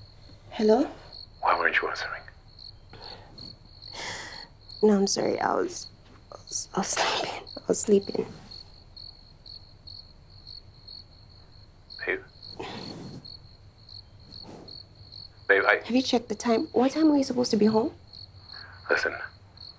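A young woman speaks tiredly into a phone, close by.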